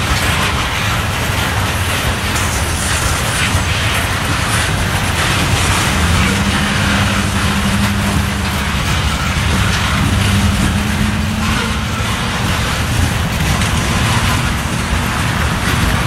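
Freight car wheels clack and rumble over the rail joints.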